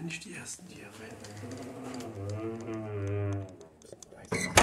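A wooden door creaks slowly on its hinges.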